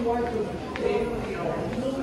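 A man talks on a phone nearby.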